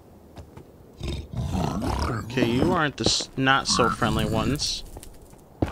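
Pig-like creatures snort and grunt angrily.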